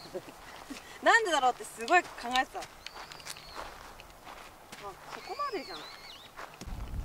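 Young women talk with animation nearby.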